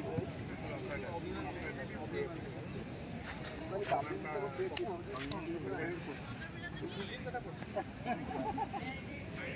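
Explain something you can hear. A crowd of men chatters outdoors, close by.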